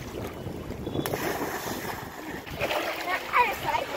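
A girl jumps and splashes into the water.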